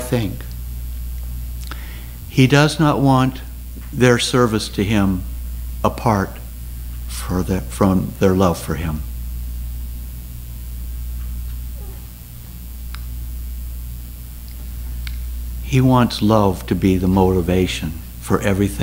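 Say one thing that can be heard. An elderly man speaks calmly through a microphone, with long pauses.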